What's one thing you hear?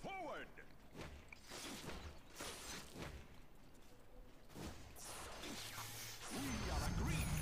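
Magic spell effects whoosh and burst in a video game.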